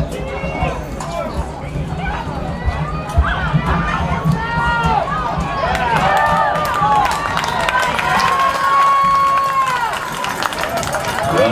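Young boys shout excitedly outdoors.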